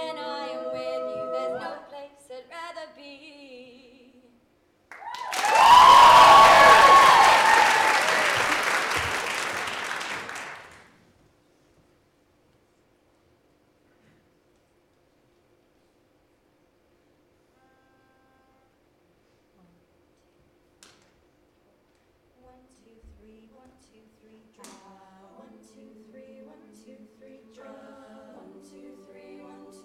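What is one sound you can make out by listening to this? A choir of young women sings together.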